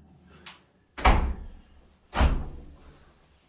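A door shuts with a heavy thud.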